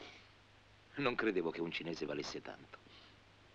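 A young man speaks quietly up close.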